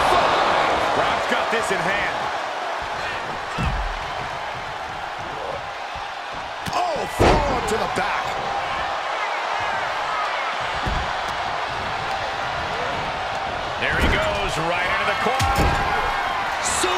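A large crowd cheers and roars throughout in a big echoing arena.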